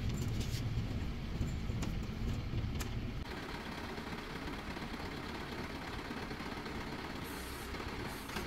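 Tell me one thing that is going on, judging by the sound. Shoes thump on a metal truck bed.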